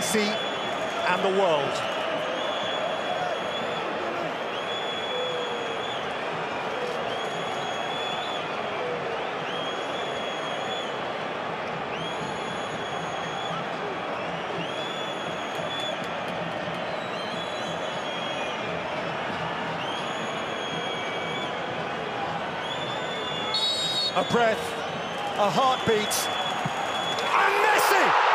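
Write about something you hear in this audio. A large crowd murmurs and whistles steadily in a vast open stadium.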